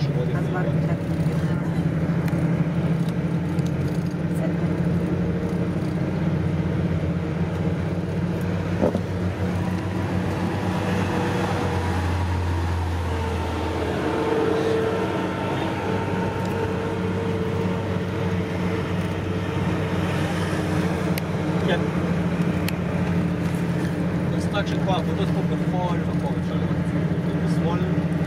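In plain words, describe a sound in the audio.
A vehicle engine hums steadily from inside while driving.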